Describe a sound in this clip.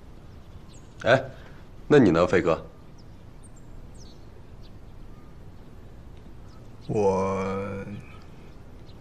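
A young man speaks in a low, hesitant voice close by.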